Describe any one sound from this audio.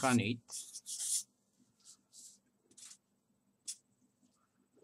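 A felt-tip marker squeaks and scratches on paper in short strokes.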